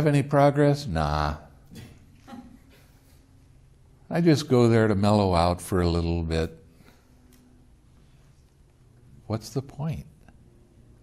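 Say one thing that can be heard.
An elderly man speaks slowly and expressively into a close microphone, with pauses.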